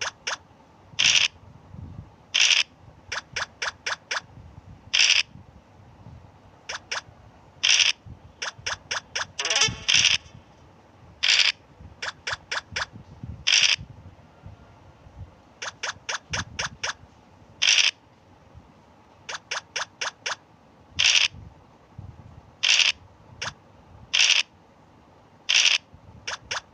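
A dice rattles briefly as it rolls.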